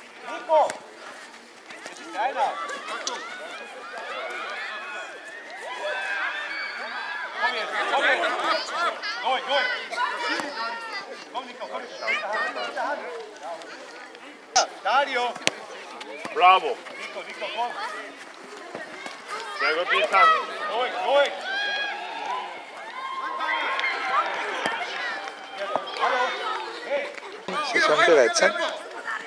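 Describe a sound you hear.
Young children shout and call out to each other outdoors.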